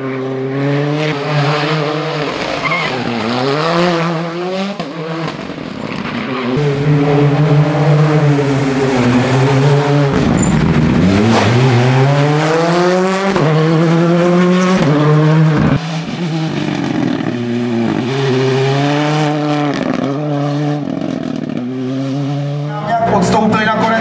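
A rally car engine roars and revs loudly as the car speeds past, shifting gears.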